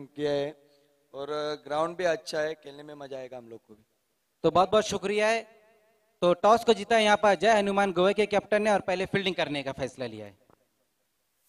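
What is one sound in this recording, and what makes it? A man talks with animation through a microphone and loudspeaker.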